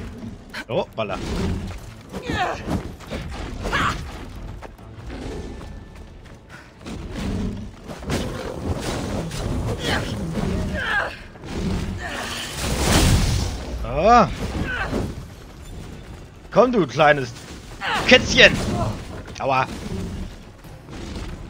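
A large beast roars and growls.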